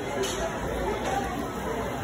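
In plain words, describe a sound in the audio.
Liquid pours into a glass over ice.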